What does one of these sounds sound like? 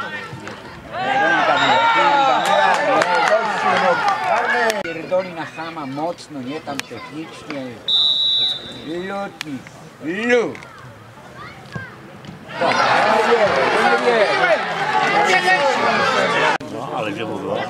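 A crowd of spectators shouts and cheers loudly.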